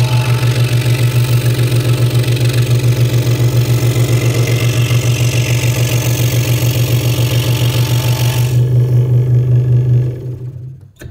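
A scroll saw buzzes steadily as its blade cuts through wood, then winds down.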